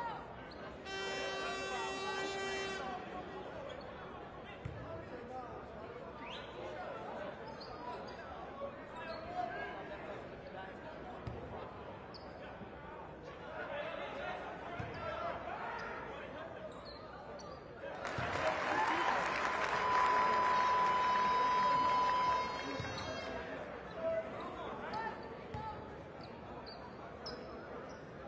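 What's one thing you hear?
A large crowd murmurs and chatters in an echoing arena.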